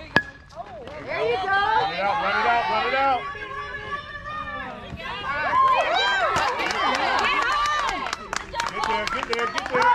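Young players shout and cheer from across an open field.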